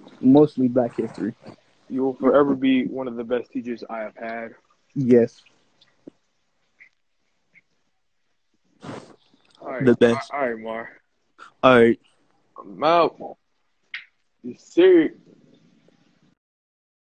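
A young man talks animatedly through an online call.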